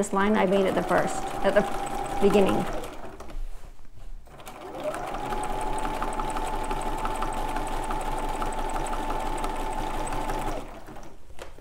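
A sewing machine whirs steadily as it stitches, pausing briefly before running again.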